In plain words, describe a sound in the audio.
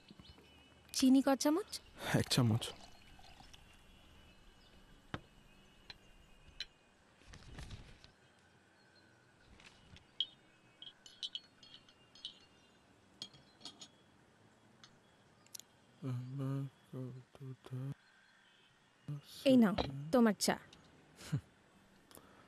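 A woman speaks calmly nearby.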